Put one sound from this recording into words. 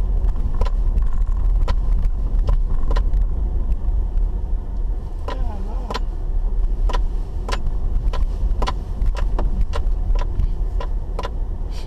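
A car engine rumbles low and steady as it rolls slowly.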